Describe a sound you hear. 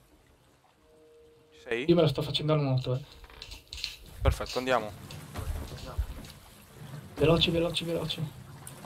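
Waves slosh against a wooden boat's hull at sea.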